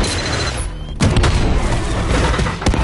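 An explosion booms suddenly.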